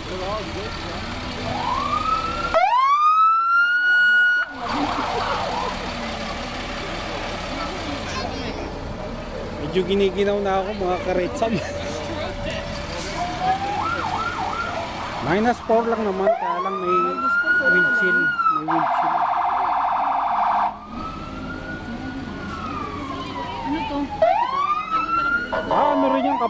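A siren whoops up and wails loudly nearby, again and again.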